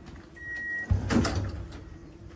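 A train door thuds shut.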